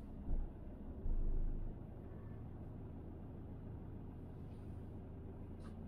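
A van passes close by.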